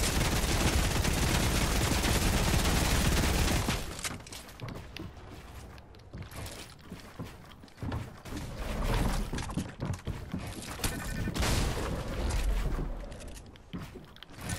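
Building pieces snap into place with quick clicks and knocks.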